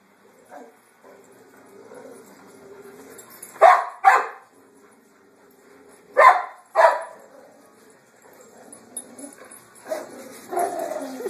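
Large dogs growl while play-fighting.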